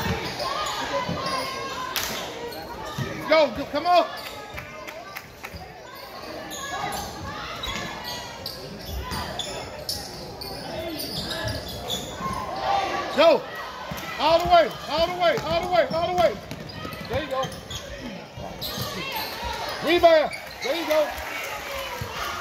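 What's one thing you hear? A crowd murmurs and calls out in an echoing gym.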